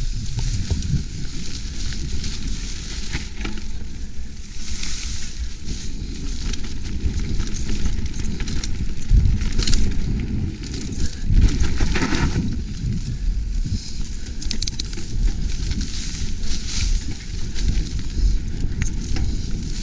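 Tall grass swishes against a bicycle.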